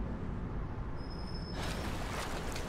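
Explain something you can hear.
Water rumbles, low and muffled, as if heard from underwater.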